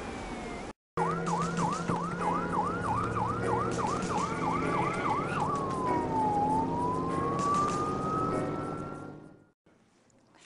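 An ambulance siren wails.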